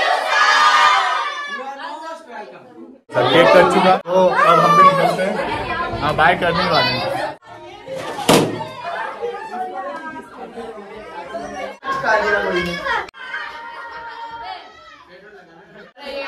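Children clap their hands.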